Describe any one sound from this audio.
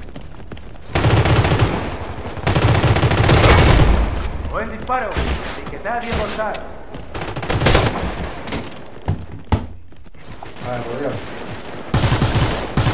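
A rifle fires in rapid bursts of loud gunshots.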